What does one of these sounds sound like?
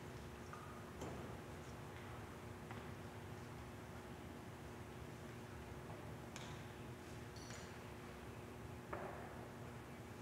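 Footsteps and soft knocks echo in a large, reverberant hall.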